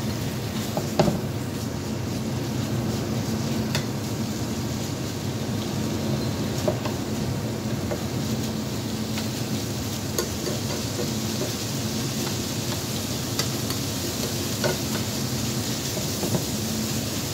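Metal tongs clink against a pan.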